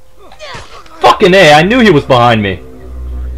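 A man grunts and gasps in pain while being choked.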